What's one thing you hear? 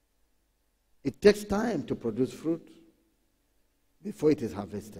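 A man speaks with emphasis into a microphone.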